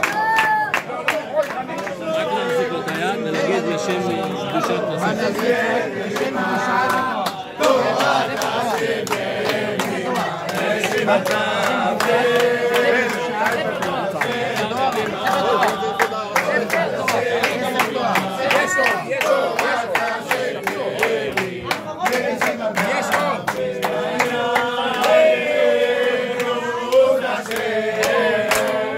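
A group of men sing together close by.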